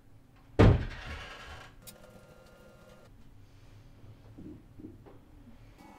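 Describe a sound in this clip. Footsteps thud softly on a floor nearby.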